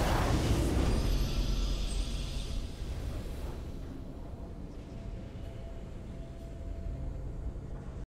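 A triumphant victory fanfare swells.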